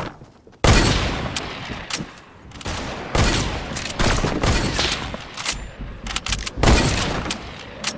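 Gunshots crack out in loud, sharp bursts.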